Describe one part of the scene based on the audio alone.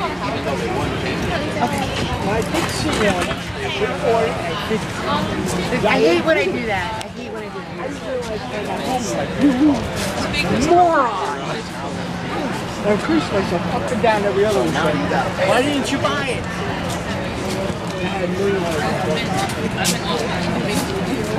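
A crowd of adults chatters nearby outdoors.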